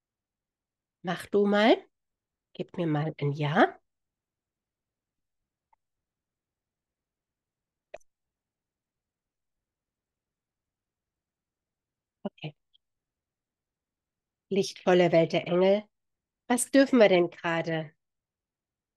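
A middle-aged woman speaks calmly and close to a microphone, in short bursts with pauses.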